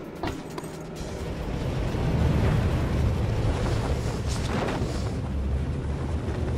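Wind rushes loudly.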